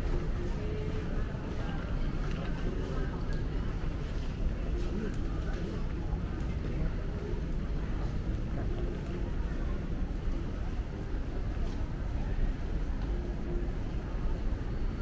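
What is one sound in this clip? A crowd murmurs in the distance.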